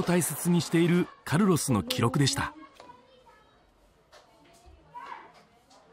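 Pages of an album turn.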